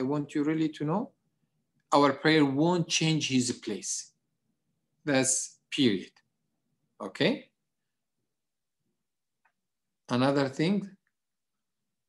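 A middle-aged man speaks calmly in short bursts through an online call.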